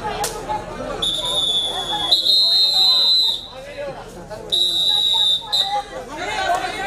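A referee's whistle blows several times.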